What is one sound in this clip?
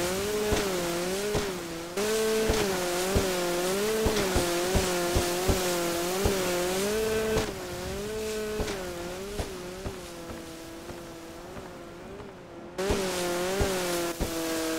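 A jet ski engine drones, its pitch rising and falling as it revs.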